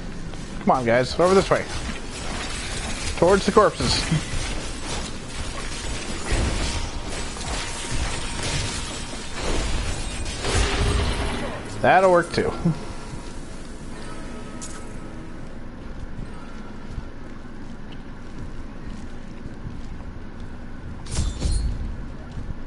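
Weapons clash and hit in a game's fight.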